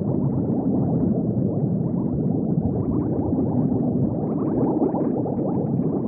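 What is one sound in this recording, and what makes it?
Bubbles gurgle and burble steadily underwater.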